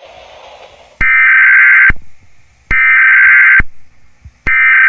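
A loud emergency alert tone blares in repeated harsh bursts.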